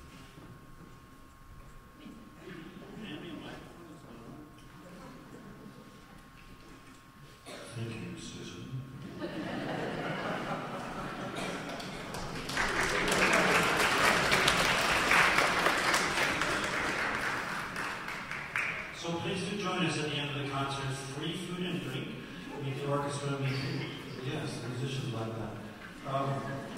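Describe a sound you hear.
An elderly man speaks calmly and with humour through a microphone.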